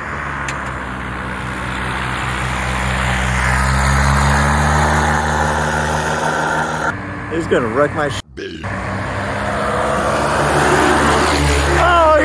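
A paramotor engine drones loudly with a propeller whirring close by.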